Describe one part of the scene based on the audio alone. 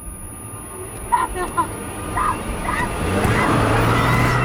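A woman screams in terror.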